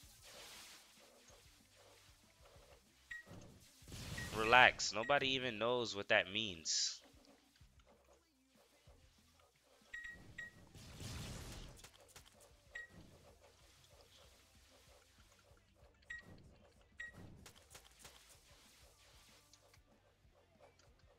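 Magic blasts whoosh and burst in quick bursts.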